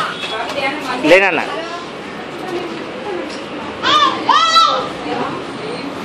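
Young children babble and chatter nearby.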